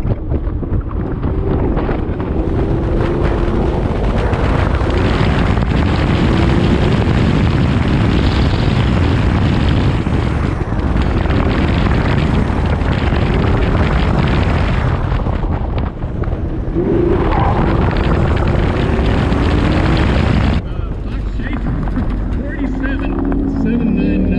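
A car engine roars loudly, revving up and down.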